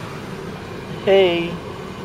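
A young child makes a short high voice sound close by.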